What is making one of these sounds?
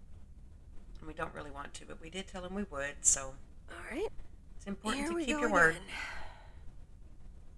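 A young woman speaks calmly to herself.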